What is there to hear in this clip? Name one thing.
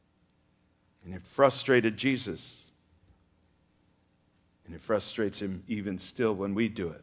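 An older man speaks slowly and deliberately through a microphone.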